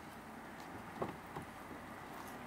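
A car door unlatches and swings open.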